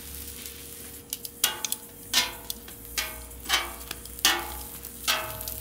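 Metal tongs clink and scrape against a griddle.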